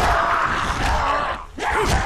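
A heavy blow thuds against a body.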